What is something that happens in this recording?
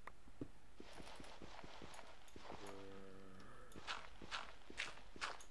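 Footsteps tap steadily on stone.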